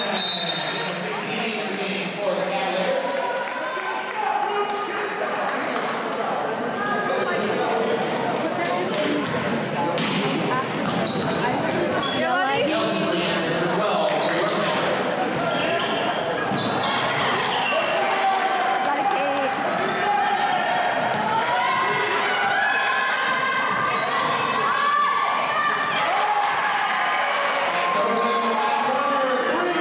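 A crowd of spectators chatters and cheers throughout in a large echoing gym.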